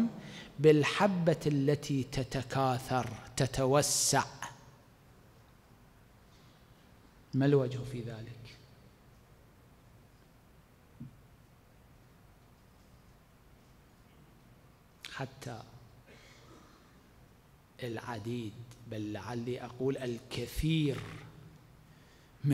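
A man speaks calmly into a microphone, with pauses between phrases.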